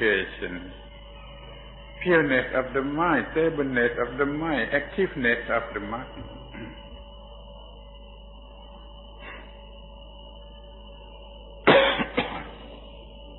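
An elderly man speaks calmly in a close, slightly muffled recording, with long pauses.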